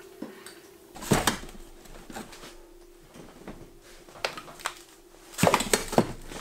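Metal and plastic items clatter in a plastic box.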